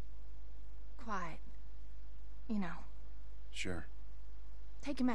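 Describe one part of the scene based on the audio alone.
A man speaks in short phrases.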